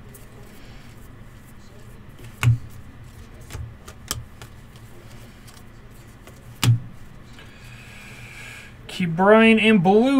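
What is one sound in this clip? Trading cards flick and tap as they are shuffled through by hand.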